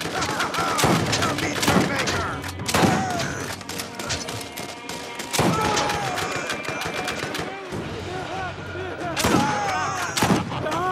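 A shotgun fires in loud, booming blasts.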